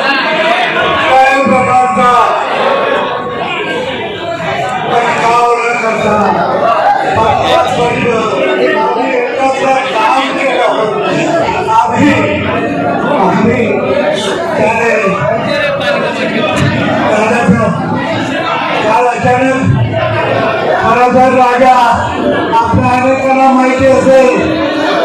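A crowd of men talk and shout over each other.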